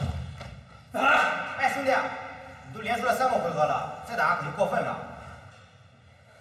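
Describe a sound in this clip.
A man speaks loudly.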